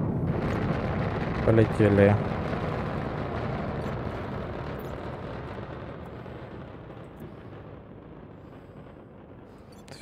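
A rocket engine roars and slowly fades into the distance.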